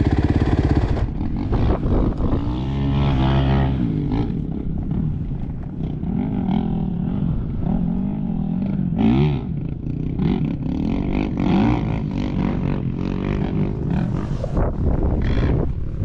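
A motorbike engine idles with a low, steady rumble.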